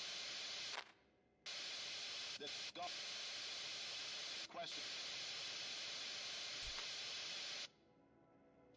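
Radio static hisses loudly and steadily.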